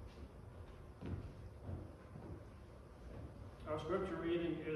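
An elderly man speaks calmly into a microphone in a large room.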